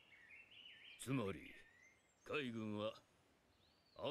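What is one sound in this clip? An elderly man speaks gravely.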